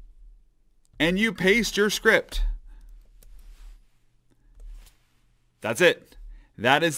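A man talks calmly and clearly into a close microphone.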